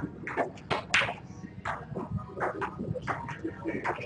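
Snooker balls click against each other.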